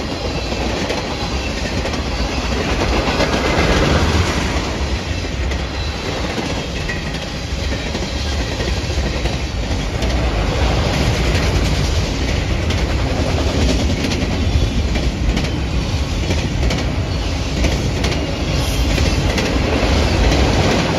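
Steel wheels clack and squeal over rail joints.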